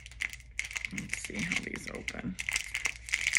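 A middle-aged woman speaks briefly and quietly, close to the microphone.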